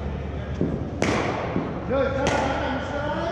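A cricket ball cracks sharply off a bat in a large echoing hall.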